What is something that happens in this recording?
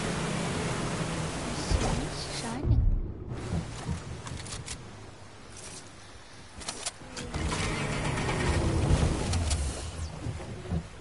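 A boat engine hums over water.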